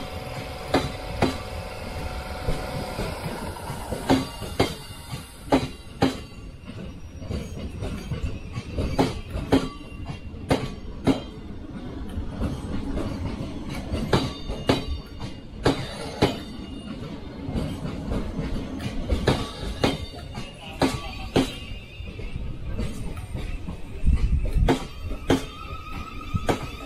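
A train rolls slowly past, its wheels clacking over rail joints.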